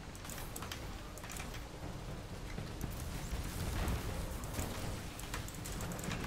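Gunfire from a video game rattles.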